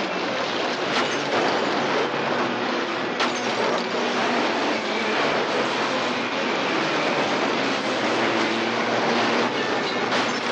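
Car bodies crunch and crumple under a heavy bus.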